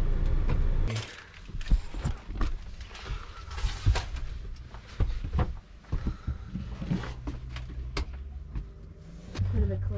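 Footsteps and knocks thud inside a small van.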